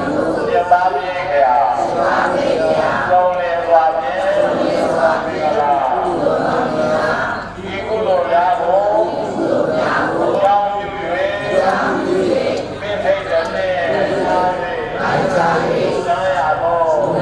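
A crowd of men and women chants a prayer together in a slow, steady rhythm.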